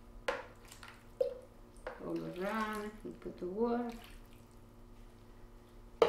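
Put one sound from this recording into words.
Water pours and splashes into a pan.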